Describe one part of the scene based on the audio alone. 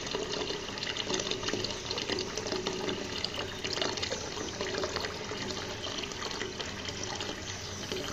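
Water splashes steadily from a pipe into a pond.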